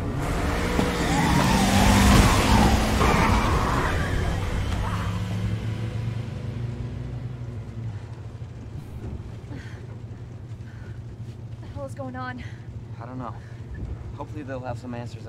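A car engine hums steadily as the car drives.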